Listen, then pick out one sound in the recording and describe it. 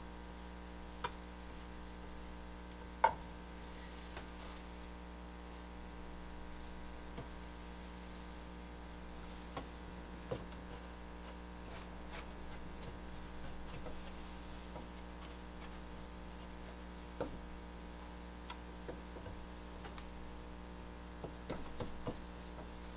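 Soft clay taps and scrapes on a wooden board.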